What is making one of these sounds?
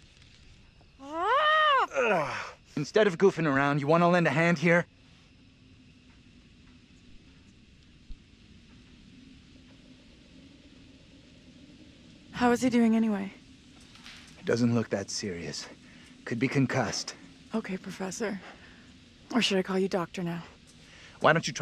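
A young woman speaks anxiously, close by.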